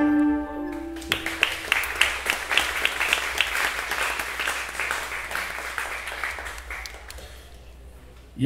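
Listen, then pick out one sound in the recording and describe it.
A banjo strums quickly and brightly.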